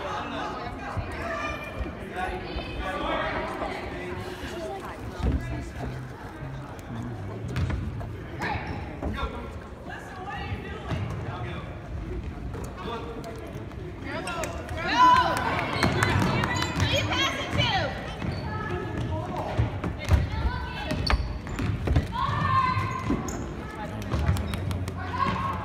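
Spectators close by talk and cheer in a large echoing gym.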